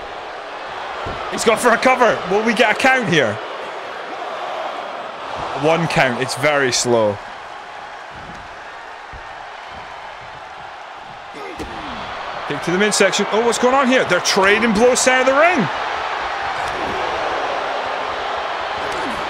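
A crowd cheers steadily in a large arena.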